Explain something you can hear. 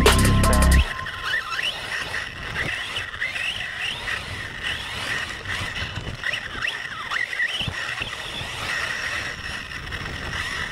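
A small electric motor whines and revs as a toy car speeds along.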